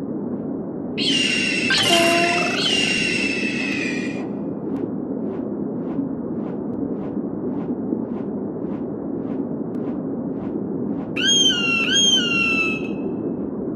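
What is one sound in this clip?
An eagle screeches loudly.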